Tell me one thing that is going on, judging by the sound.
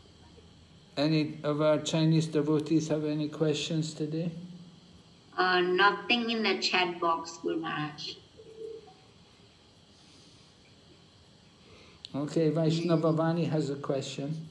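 An elderly man speaks calmly, close to a phone microphone.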